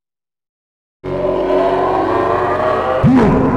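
Loud, dramatic game music plays.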